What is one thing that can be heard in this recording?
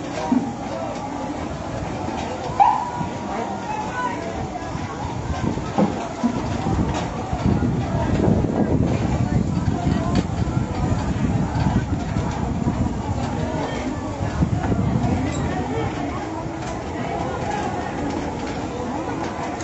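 A crowd of people shouts outdoors.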